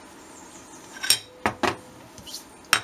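A glass jar knocks against a hard surface as it is set down.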